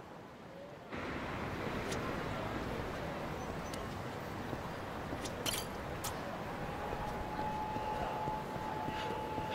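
Busy city street noise hums steadily.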